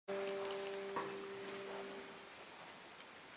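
A mixed choir holds a final chord that rings out in a large echoing hall.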